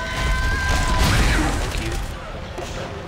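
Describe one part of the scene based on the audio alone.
A burst of crackling energy fire sounds.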